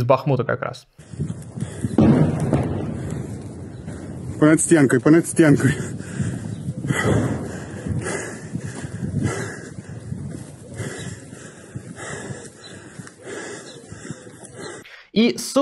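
Wind rumbles against a microphone outdoors.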